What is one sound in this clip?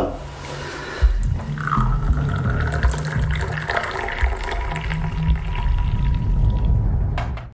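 Tea pours from a pot into a glass.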